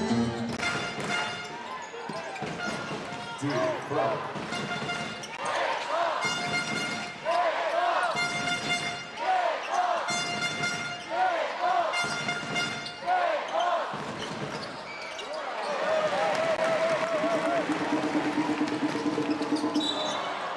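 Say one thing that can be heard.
A crowd cheers and murmurs in a large echoing arena.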